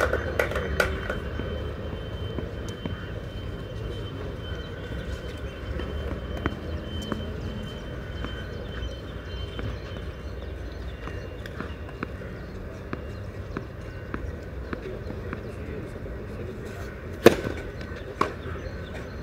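A tennis ball is struck with a racket and bounces on the court.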